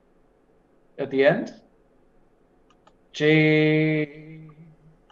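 A second man speaks briefly over an online call.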